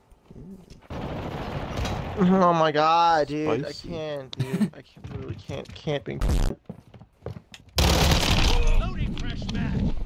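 Rapid gunfire bursts out.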